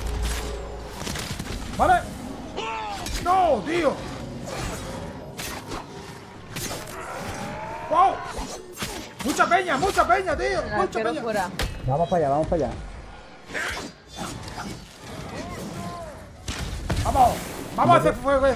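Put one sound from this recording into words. Swords clash and explosions boom in a video game.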